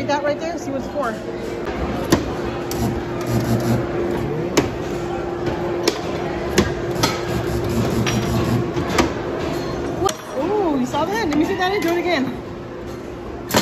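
Plastic parts click and knock as a child presses buttons.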